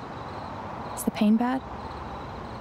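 A young woman asks a short question softly.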